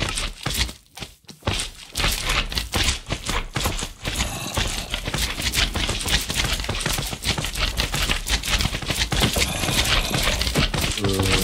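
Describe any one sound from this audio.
Slimes squelch as they hop nearby.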